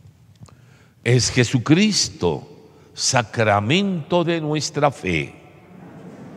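An elderly man chants prayers aloud into a microphone.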